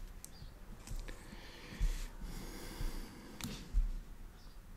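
A piece of leather slides across a plastic board.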